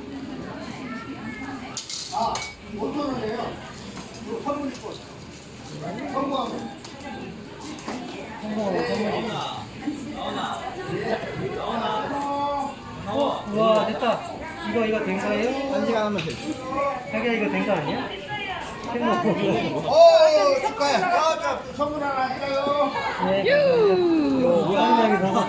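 A woman talks nearby in a lively, chatty way.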